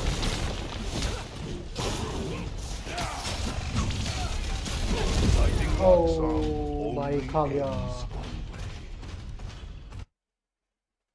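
Blows and crashes thud loudly in a fast fight.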